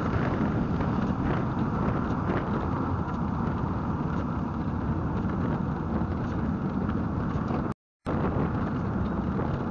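Wind rumbles loudly against the car.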